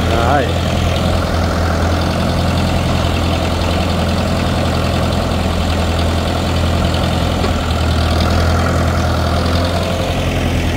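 A tractor engine idles steadily close by.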